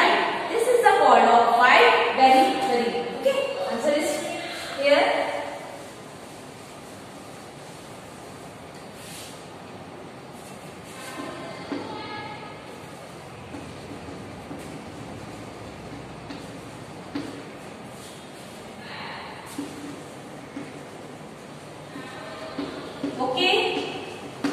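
A young woman speaks clearly and calmly, close by, as if teaching.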